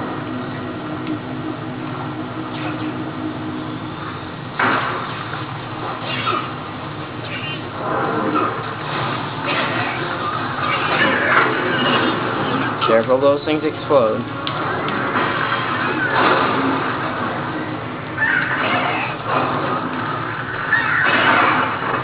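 Music plays from a television speaker.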